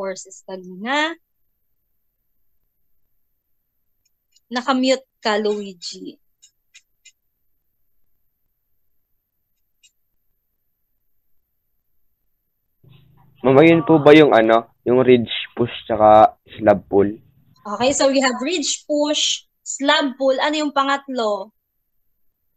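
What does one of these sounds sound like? A young woman speaks calmly over an online call, in short bursts with pauses.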